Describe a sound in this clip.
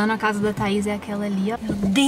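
Rain patters on a car windscreen.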